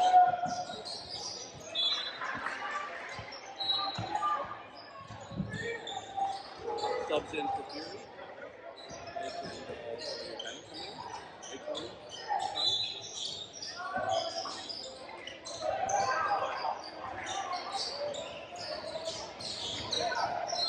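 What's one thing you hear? Young players shout and call out to each other in a large echoing gym.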